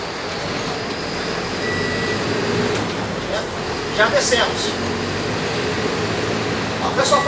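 A bus rattles and creaks as it rolls along.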